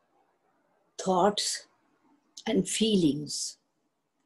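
An elderly woman speaks calmly and closely into a microphone.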